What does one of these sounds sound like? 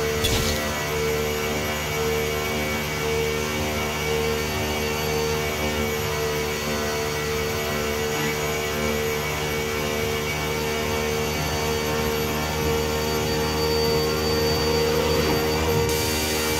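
Wind rushes past a fast-moving car.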